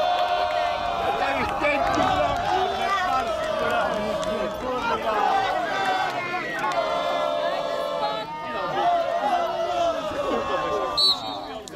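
Men shout and cheer in the distance outdoors.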